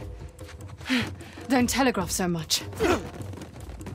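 A woman speaks coolly and tauntingly.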